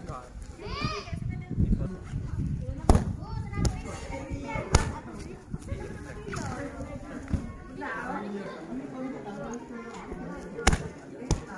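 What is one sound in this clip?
Children shout and cry out with excitement nearby.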